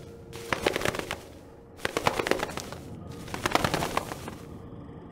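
A pigeon flaps its wings in short bursts.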